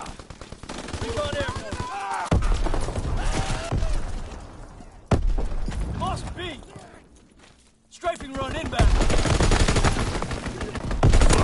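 Rapid gunfire rattles close by in bursts.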